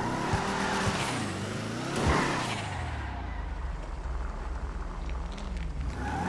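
Car tyres screech on the road.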